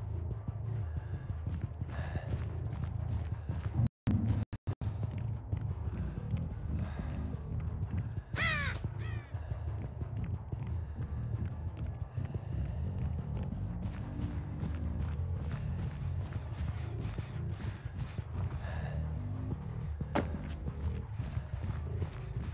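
Footsteps fall steadily on a hard floor.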